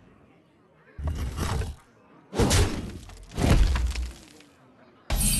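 Game sound effects crash and thud as a figure attacks.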